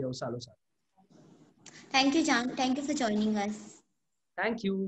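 A young woman talks and laughs over an online call.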